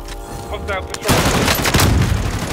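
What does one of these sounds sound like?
An assault rifle fires in a video game.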